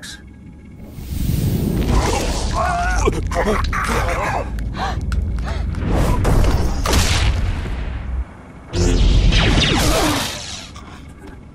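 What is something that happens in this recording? Blaster pistols fire in rapid bursts.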